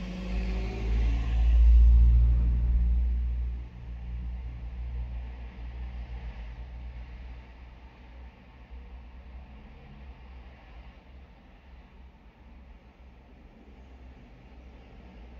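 A car engine idles with a low, steady rumble.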